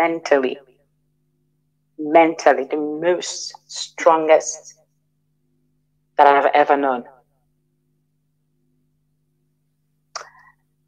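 A woman speaks with animation, heard through a microphone.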